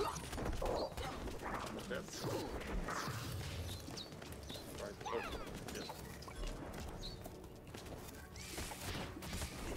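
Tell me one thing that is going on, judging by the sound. Magic spells crackle and zap.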